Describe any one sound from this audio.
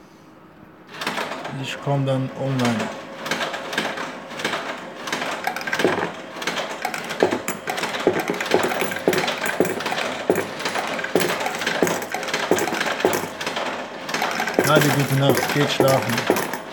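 Coins clatter rapidly into a slot machine's payout tray.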